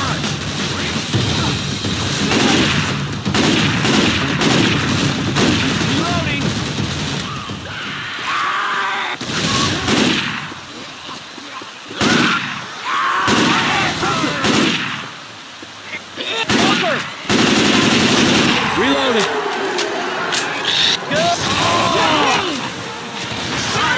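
A young man talks with animation through a microphone.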